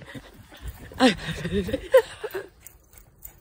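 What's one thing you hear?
A dog bounds through crunching snow.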